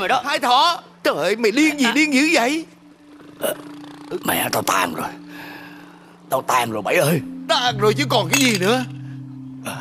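A middle-aged man wails and cries.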